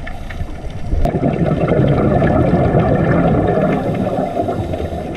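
Scuba divers breathe out, with bubbles gurgling and rushing underwater.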